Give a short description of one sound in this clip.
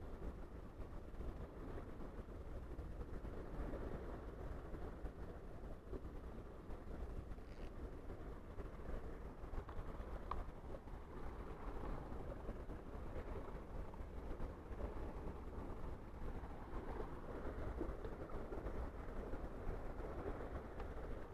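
Wind buffets the microphone steadily outdoors.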